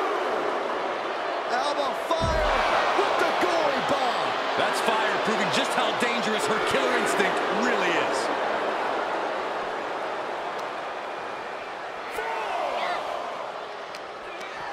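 A large crowd cheers and chants loudly throughout.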